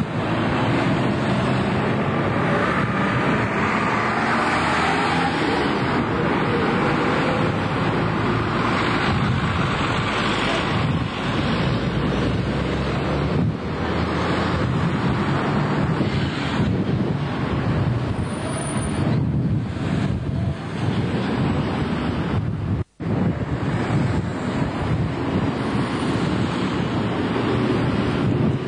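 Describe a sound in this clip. Street traffic drones steadily.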